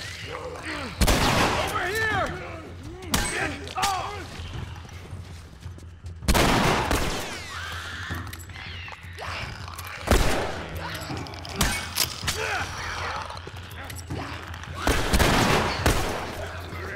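Gunshots bang loudly in an echoing room.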